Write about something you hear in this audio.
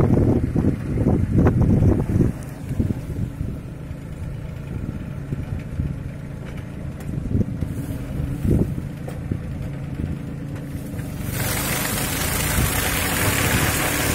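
Sugarcane stalks rustle and crackle as a planter pushes through them.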